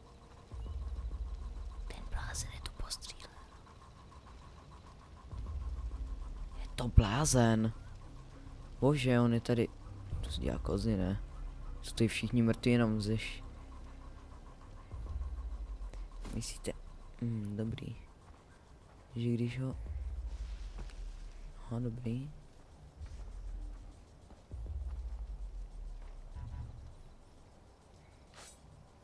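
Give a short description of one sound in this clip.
Footsteps rustle through grass and brush.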